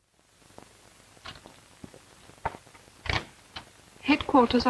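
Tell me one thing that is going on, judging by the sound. Phone plugs click into a switchboard.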